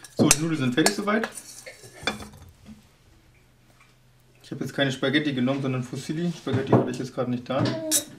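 A spoon scrapes and clinks against a metal pot as pasta drops onto a plate.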